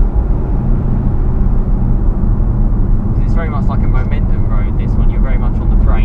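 A car engine hums and rumbles steadily from inside the car.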